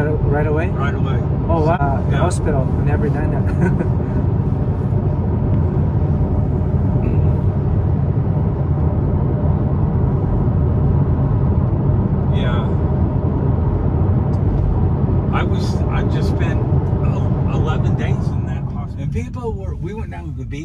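A car engine and road noise rumble steadily.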